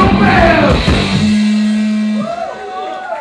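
A live rock band plays loudly through amplifiers.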